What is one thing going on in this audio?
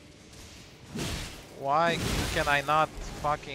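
A sword strikes with a sharp clash.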